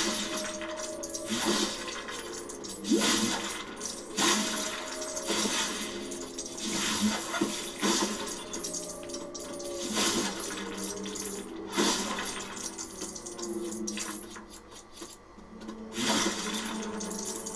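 Plastic bricks clatter and scatter as objects smash apart.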